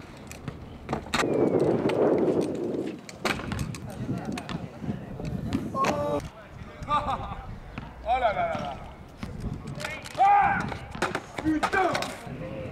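Scooter wheels roll and grind on concrete.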